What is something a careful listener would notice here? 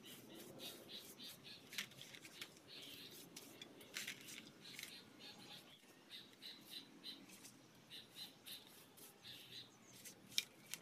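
A brush scrapes and swishes over wet cement.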